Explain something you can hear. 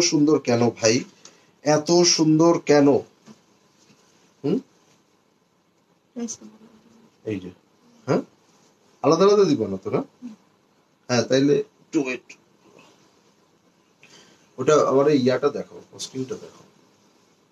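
A young man talks close by, speaking with animation in short bursts.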